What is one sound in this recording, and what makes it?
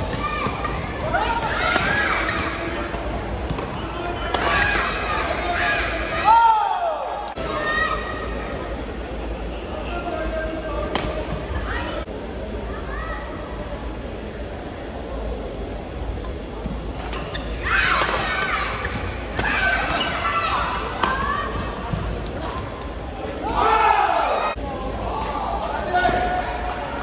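A crowd of spectators cheers and shouts in a large echoing hall.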